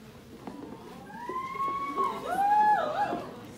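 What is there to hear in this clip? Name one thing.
A young woman whoops and shouts with excitement nearby.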